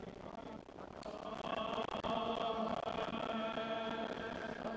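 A man reads aloud into a microphone in an echoing hall.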